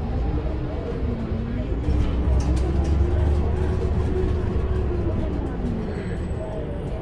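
A bus engine whines higher as the bus speeds up.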